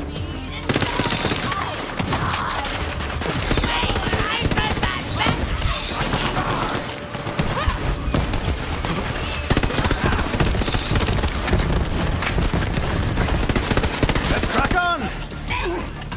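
Rapid gunfire rattles and booms in bursts.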